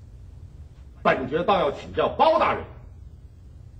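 A man speaks with measured firmness.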